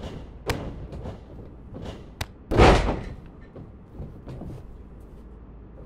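Wrestlers' bodies thud hard onto a ring mat.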